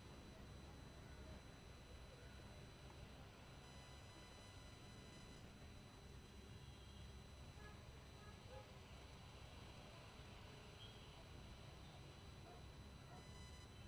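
Cricket players call out to each other faintly across an open field.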